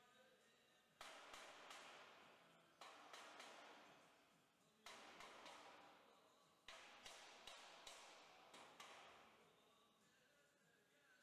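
A hammer strikes sheet metal with ringing clangs.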